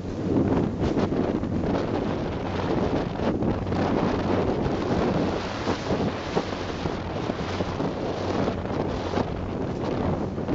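Water splashes against a moving boat's hull.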